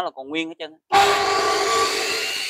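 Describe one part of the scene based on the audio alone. An electric saw motor starts and whirs loudly.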